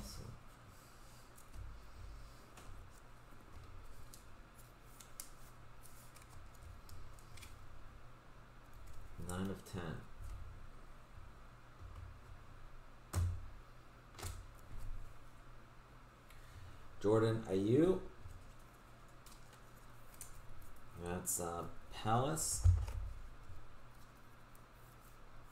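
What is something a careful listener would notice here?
Plastic card sleeves rustle and click in hands.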